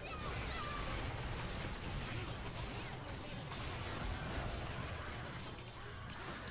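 Magic spell effects whoosh and crackle in a fight.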